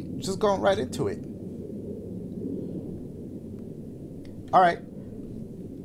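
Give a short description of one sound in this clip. A young man speaks in short, animated bursts into a close microphone.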